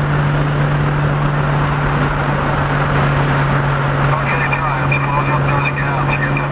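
A car engine hums steadily as the car drives past at speed.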